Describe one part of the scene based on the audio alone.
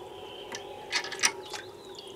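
Water trickles from a tap into cupped hands.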